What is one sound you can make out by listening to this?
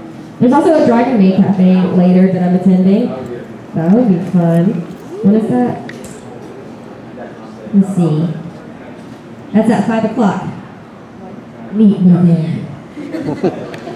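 A young woman sings into a microphone over loudspeakers in a large hall.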